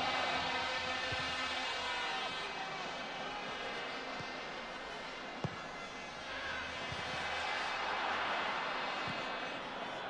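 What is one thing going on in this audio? A stadium crowd roars and cheers, swelling louder toward the end.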